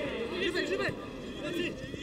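A player kicks a football.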